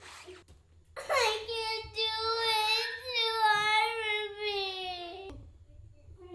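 A young child cries loudly, wailing.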